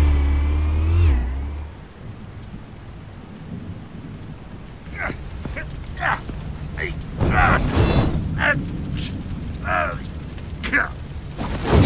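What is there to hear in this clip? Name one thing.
Flames crackle.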